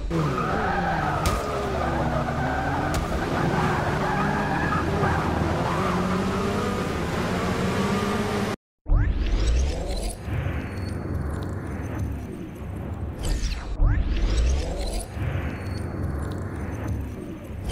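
A racing car engine roars and revs up and down through gear changes.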